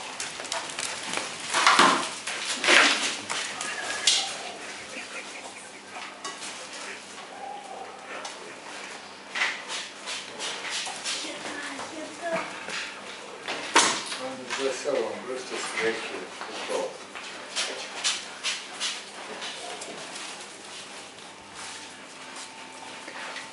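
Bear cubs scuffle and patter on a hard floor.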